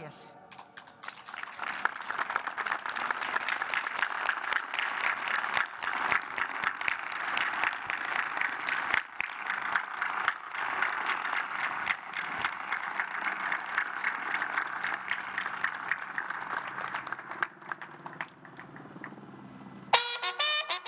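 A large crowd applauds steadily outdoors.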